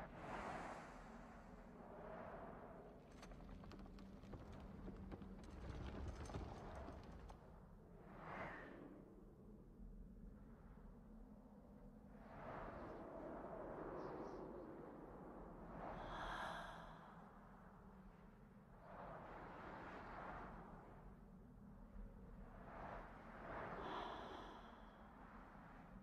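A rushing wind whooshes past and fades.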